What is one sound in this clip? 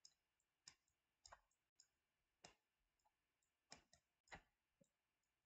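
A pen taps and scratches lightly on a writing surface.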